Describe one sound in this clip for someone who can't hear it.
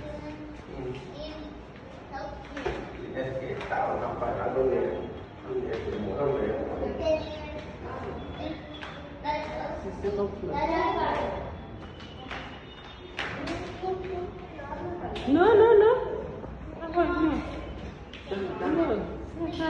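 Women talk nearby in an echoing room.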